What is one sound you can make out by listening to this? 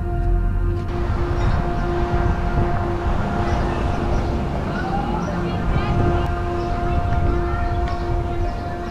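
Footsteps scuff along a pavement outdoors.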